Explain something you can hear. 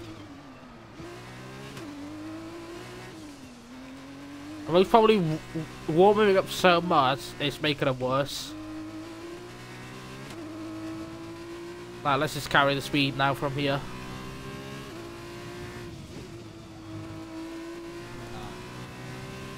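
A racing car engine whines steadily, rising and falling in pitch as the gears change.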